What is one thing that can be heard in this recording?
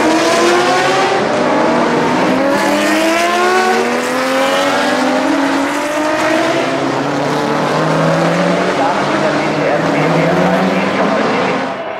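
Engines of many racing cars drone and whine in the distance.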